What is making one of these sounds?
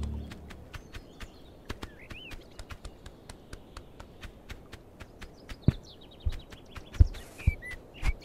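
A goose's feet patter quickly and softly.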